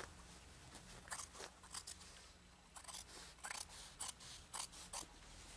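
Scissors snip through cloth.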